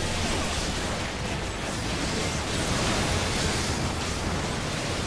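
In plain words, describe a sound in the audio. Magical spell effects crackle and burst during a fantasy battle.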